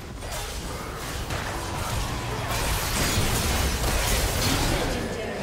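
Fantasy battle sound effects of spells and weapons clash and burst.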